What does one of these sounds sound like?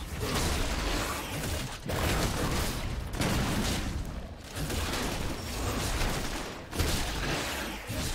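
Magic blasts and sword strikes crash and whoosh in a fast fight.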